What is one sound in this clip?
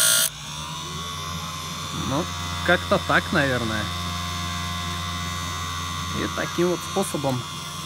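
A grinding wheel motor hums steadily.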